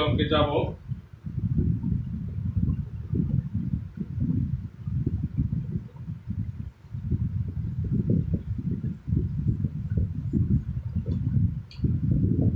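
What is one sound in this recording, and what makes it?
A man speaks steadily close by, sounding muffled.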